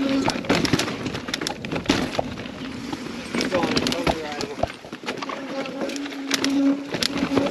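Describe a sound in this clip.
Mountain bike tyres roll over rocks and roots on a dirt trail.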